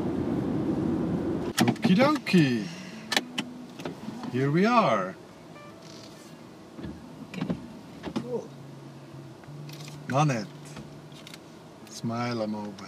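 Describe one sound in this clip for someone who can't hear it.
A car engine hums quietly inside the car.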